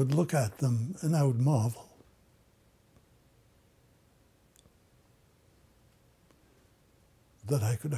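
An elderly man speaks calmly, close to a microphone.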